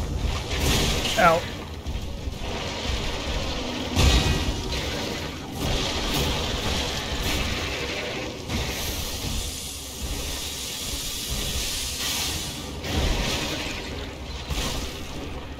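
Heavy weapon blows clash and thud against a monster.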